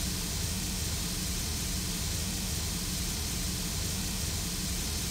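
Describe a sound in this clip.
A steam locomotive idles nearby with a steady hiss and low rumble.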